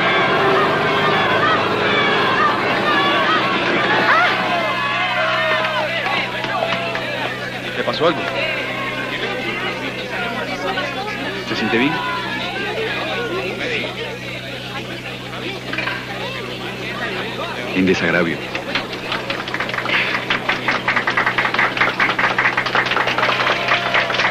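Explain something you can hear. A large crowd chatters and calls out loudly outdoors.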